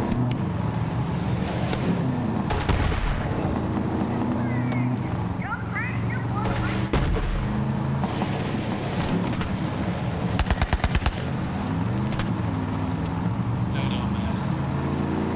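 A vehicle engine roars steadily.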